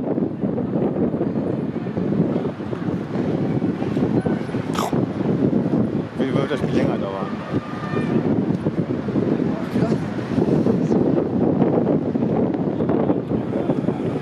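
A crowd murmurs and calls out in an open-air stadium.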